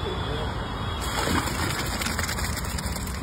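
Soaked chickpeas pour out of a bucket into a metal pot.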